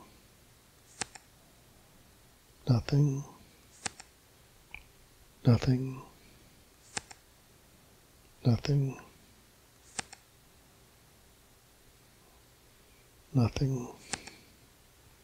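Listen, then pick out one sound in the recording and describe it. A playing card flips over with a short click, again and again.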